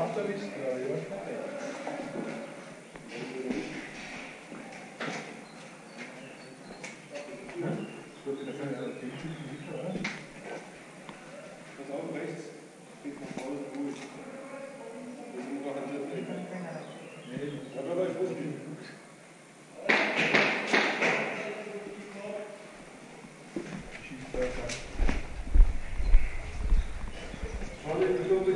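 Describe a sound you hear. Men talk in low voices nearby.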